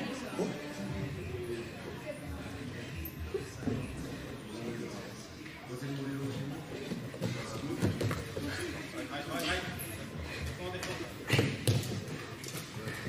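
Bodies thump and scuff on a wrestling mat.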